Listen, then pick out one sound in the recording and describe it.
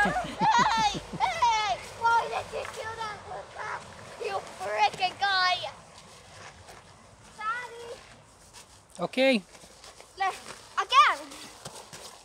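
A young child squeals and shouts excitedly close by.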